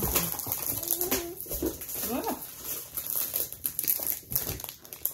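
A snack wrapper crinkles close by.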